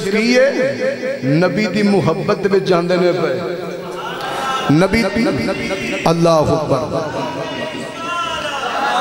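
A man preaches passionately into a microphone, heard through loudspeakers.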